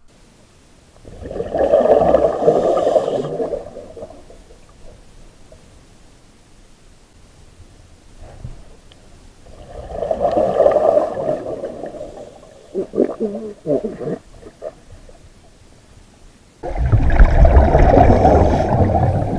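Scuba bubbles rumble and gurgle underwater as a diver breathes out, in bursts.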